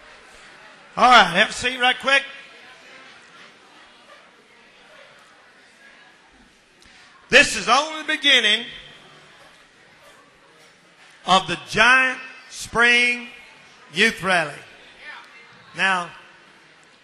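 A man speaks with animation into a microphone over loudspeakers, echoing through a large hall.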